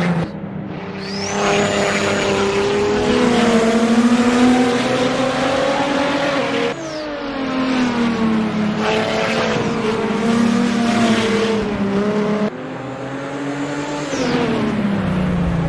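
A car's tyres squeal as it slides through corners.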